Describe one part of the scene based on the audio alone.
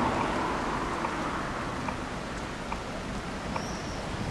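Tram wheels click and squeak on the rails.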